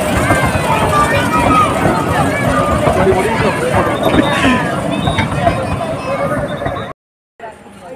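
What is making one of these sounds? A small train rumbles past on its track.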